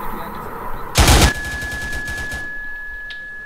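A rifle fires a single loud shot that echoes briefly.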